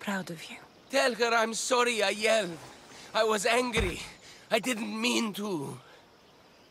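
A man speaks weakly and with regret.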